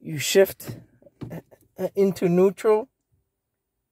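A gear lever clicks into place.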